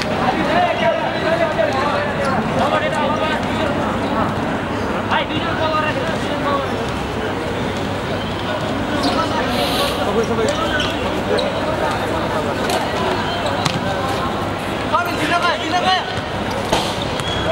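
A crowd of men shouts and chatters outdoors.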